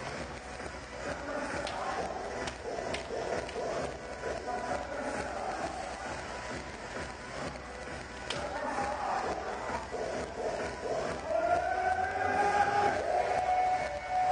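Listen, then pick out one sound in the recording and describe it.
A crowd murmurs.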